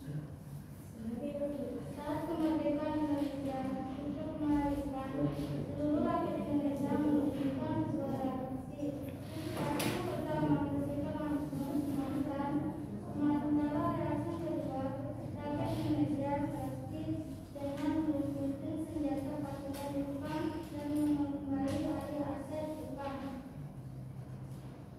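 A woman speaks steadily in a room with some echo.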